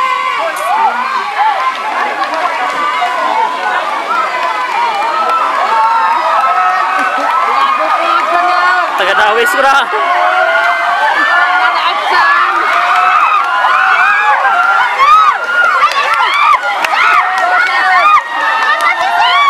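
A crowd of young people shout and cheer nearby, outdoors.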